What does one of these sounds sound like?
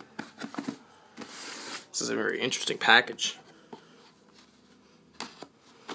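A blade scrapes and slices against cardboard.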